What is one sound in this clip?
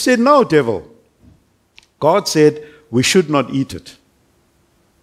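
A middle-aged man speaks calmly into a headset microphone, in a small echoing room.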